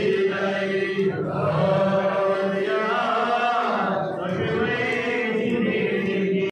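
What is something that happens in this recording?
A crowd of men chants loudly together in a steady drone.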